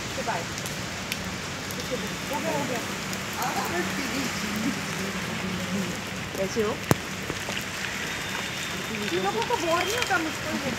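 Men call out and talk excitedly nearby.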